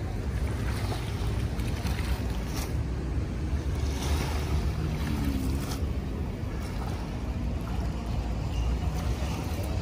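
Wet seaweed and debris rustle as they are gathered up.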